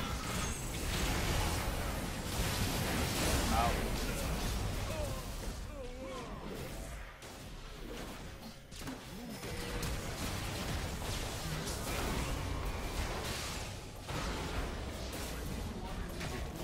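Fantasy spells crackle, whoosh and boom in a fast battle.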